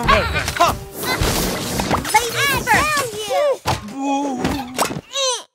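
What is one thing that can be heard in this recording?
Cartoon game sound effects whoosh and chime in quick succession.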